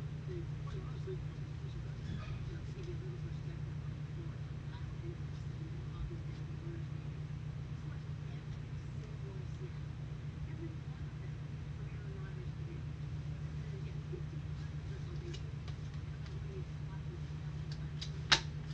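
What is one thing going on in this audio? Cards shuffle and rustle in gloved hands.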